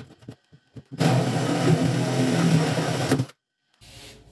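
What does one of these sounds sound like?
A cordless drill whirs loudly as it bores into wood.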